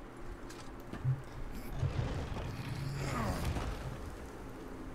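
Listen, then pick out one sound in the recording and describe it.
Heavy stone doors rumble and grind open.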